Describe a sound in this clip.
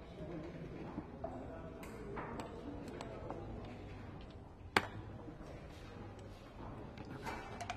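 Game pieces click against a wooden board.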